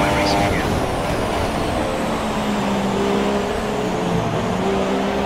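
A Formula One car's engine drops in pitch as it downshifts under braking.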